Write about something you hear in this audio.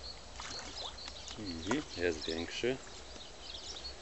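Something small splashes onto still water.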